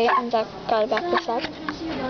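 Cards rustle softly as a hand handles them.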